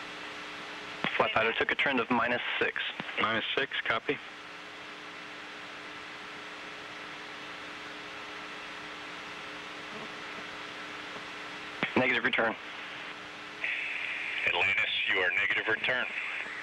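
A man speaks calmly over a radio link, in short bursts.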